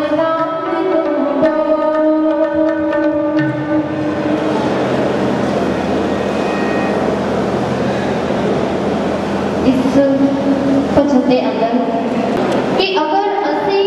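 A harmonium plays a steady, droning melody.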